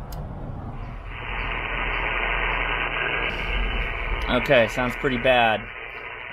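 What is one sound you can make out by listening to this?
A radio receiver hisses with static.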